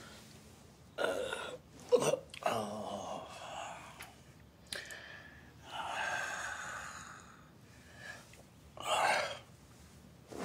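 A man groans and whines close by.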